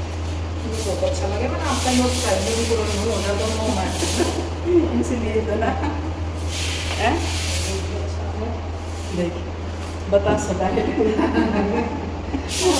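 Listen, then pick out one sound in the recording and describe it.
A middle-aged woman talks with animation.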